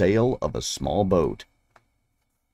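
A man reads aloud calmly, close to a microphone.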